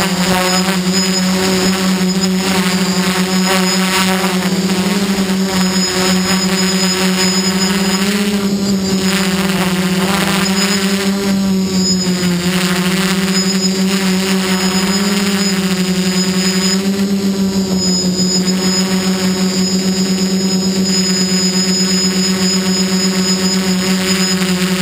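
A drone's propellers whine with a steady, loud buzz that rises and falls a little in pitch.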